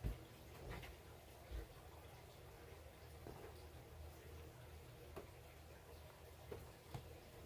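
Fabric rustles and slides softly as hands smooth it out.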